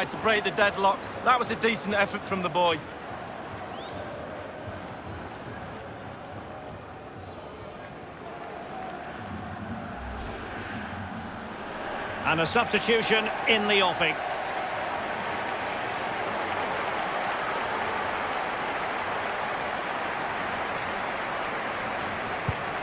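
A stadium crowd roars.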